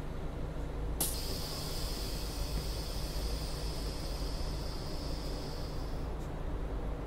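A bus door hisses shut with a burst of air.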